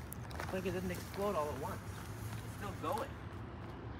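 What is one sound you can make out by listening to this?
Footsteps crunch on gravel nearby.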